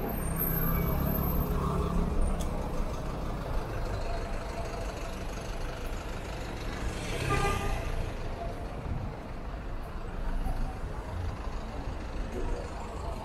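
Traffic noise fills the air outdoors.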